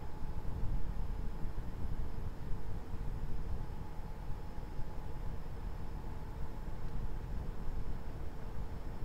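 Tyres roll over the road with a steady hum.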